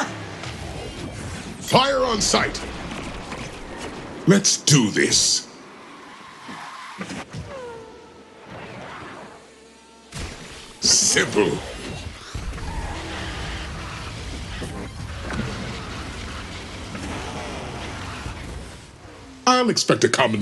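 Racing kart engines roar at high speed.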